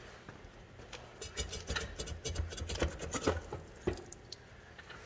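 Metal parts knock and clink as a hand handles an old engine.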